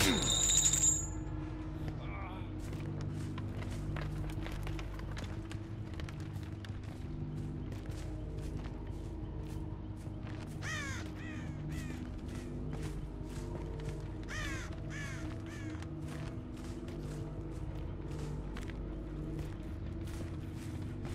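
Footsteps run quickly through grass and over dirt.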